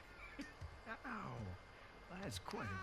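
A young man laughs softly close to a microphone.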